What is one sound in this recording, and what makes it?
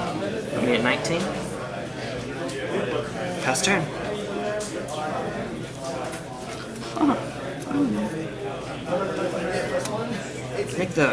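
Playing cards tap and slide on a soft mat.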